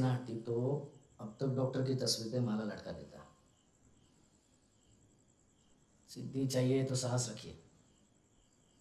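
A man speaks tensely in a low voice.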